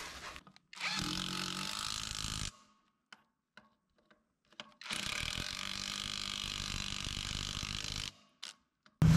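An impact wrench whirs in bursts, loosening lug nuts.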